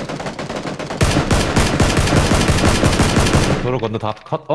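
Rifle shots ring out in rapid succession.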